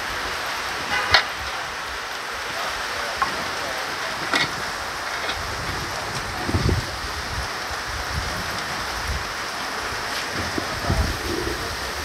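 A cable clatters and scrapes against a metal panel.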